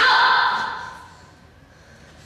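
A woman speaks loudly to a man nearby.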